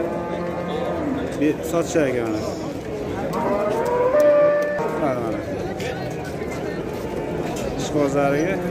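Several men talk and call out nearby in a busy outdoor crowd.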